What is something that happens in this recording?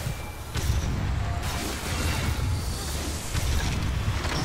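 A blade swishes and clangs in quick strikes.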